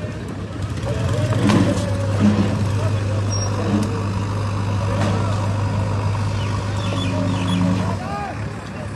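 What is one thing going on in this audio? A heavy machine's engine rumbles steadily nearby.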